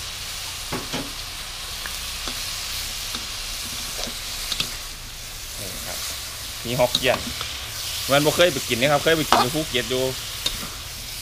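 Metal tongs scrape and clink against a wok.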